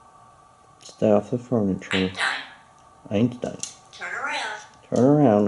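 A parrot calls out loudly in a high, voice-like chatter.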